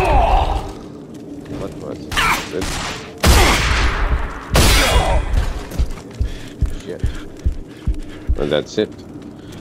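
Gunshots fire loudly in sharp bursts.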